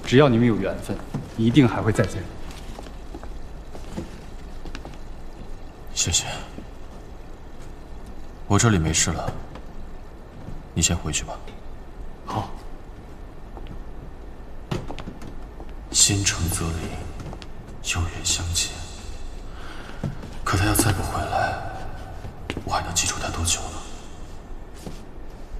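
A young man speaks calmly and softly, close by.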